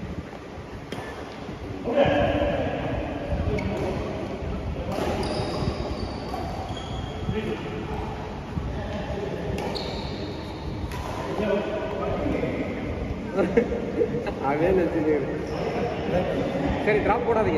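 Shuttlecocks are struck with sharp pops of badminton rackets in an echoing hall.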